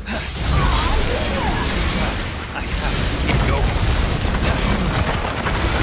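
Sword blades slash and clang in rapid strikes.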